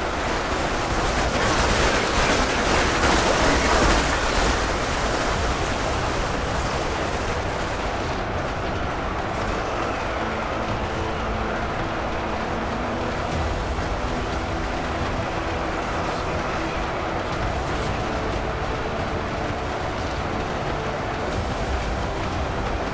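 A huge crowd of soldiers roars and clashes in battle.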